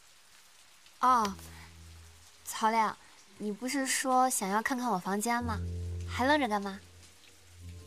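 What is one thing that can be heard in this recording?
A young woman speaks playfully and close by.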